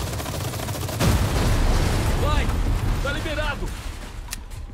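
A loud explosion bursts, followed by a roaring fire.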